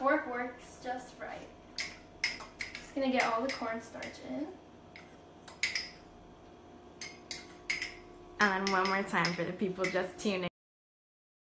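Kitchen utensils click and tap close by.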